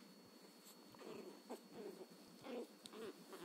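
A small puppy growls and yips playfully up close.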